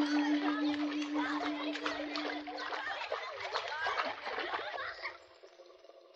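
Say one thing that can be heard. Children splash in shallow river water in the distance.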